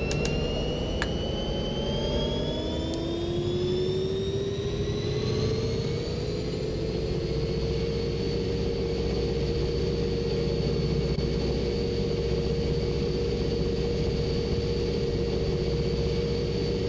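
Train wheels rumble and clatter over rails.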